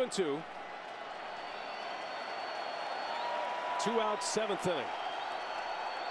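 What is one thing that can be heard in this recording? A large crowd cheers and roars in a stadium, slowly growing louder.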